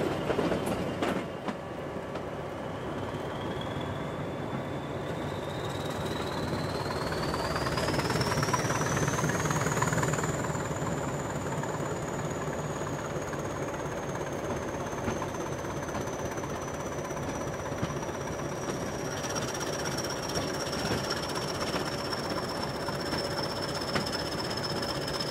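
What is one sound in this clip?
A high whine from the locomotive rises and then slowly falls.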